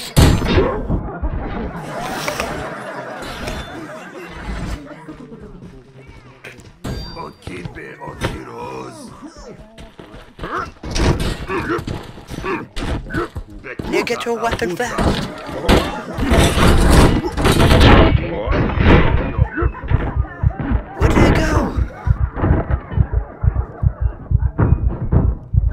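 Weapons strike bodies with heavy thuds and wet splatters.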